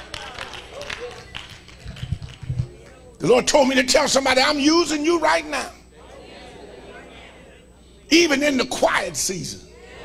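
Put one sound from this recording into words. An elderly man preaches with passion through a microphone in an echoing hall.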